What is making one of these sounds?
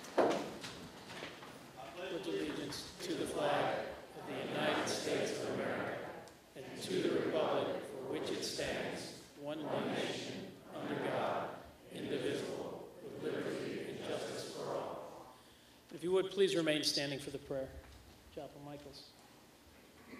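A man sings slowly into a microphone in a large echoing hall.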